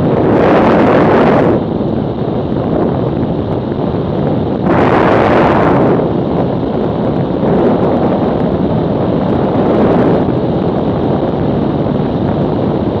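Wind roars loudly against a microphone in gusts.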